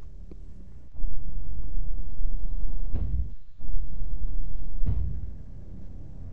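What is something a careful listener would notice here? A deep, crackling rumble swells and then cuts off.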